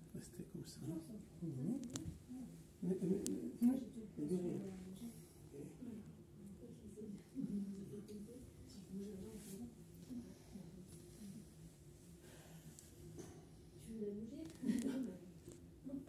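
A woman speaks softly up close.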